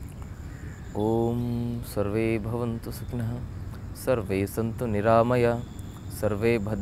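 A man speaks calmly and slowly nearby.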